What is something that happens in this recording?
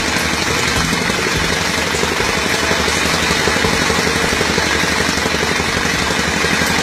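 A small petrol engine runs loudly with a fast, steady rattle.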